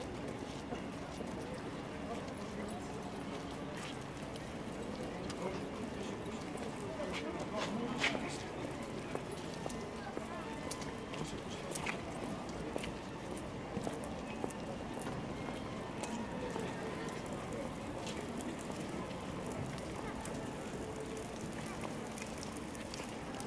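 A murmur of many voices from passers-by fills the open air.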